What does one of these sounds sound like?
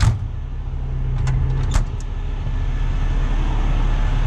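A metal compartment door slams shut.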